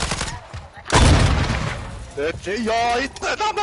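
A rocket launcher fires with a loud blast.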